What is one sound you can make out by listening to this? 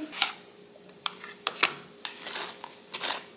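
A knife scrapes and spreads soft cheese on a toasted bagel.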